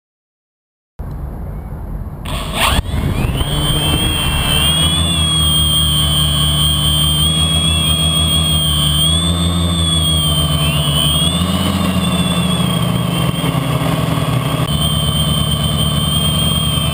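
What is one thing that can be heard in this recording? Drone propellers whir loudly with a high, shifting motor whine.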